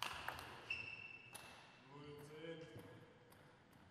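Footsteps thud softly in a large echoing hall.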